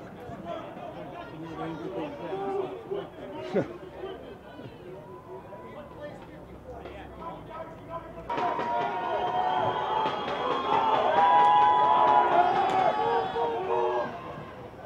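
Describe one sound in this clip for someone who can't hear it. A crowd of young men shouts and talks outdoors.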